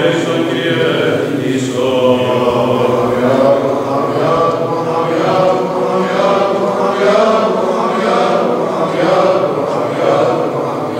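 A choir of men chants together in a resonant, echoing hall.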